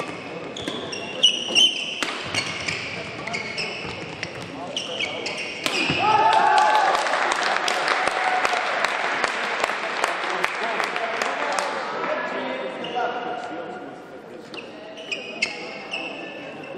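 Sports shoes squeak sharply on a hard court floor.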